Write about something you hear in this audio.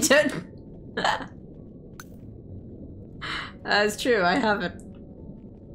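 A young woman talks with animation through a microphone, in short bursts.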